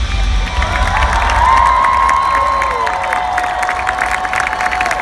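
A crowd cheers nearby.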